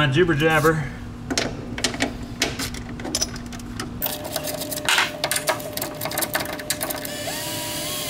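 Plastic parts click and rattle.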